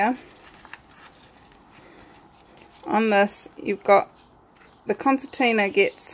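Fabric and leather rustle softly as hands fold them.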